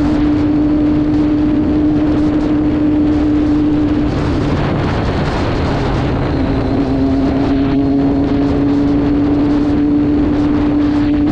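A motorcycle engine hums steadily at speed, dipping briefly and rising again.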